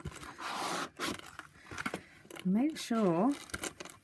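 A small cardboard drawer slides out.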